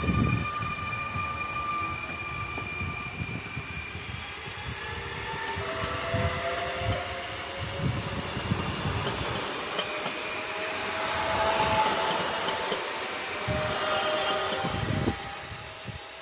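Train wheels rumble and clack over rail joints.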